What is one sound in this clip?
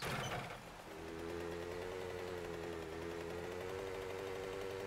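A small motorbike engine runs with a steady low hum.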